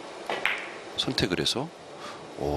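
Billiard balls click against each other on the table.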